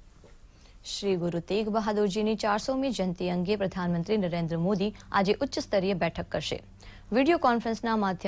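A young woman reads out the news calmly through a microphone.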